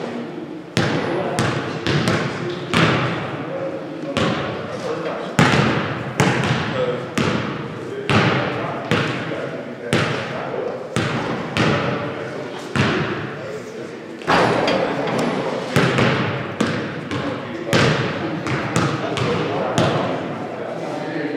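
Basketballs bounce on a hard floor, echoing in a large hall.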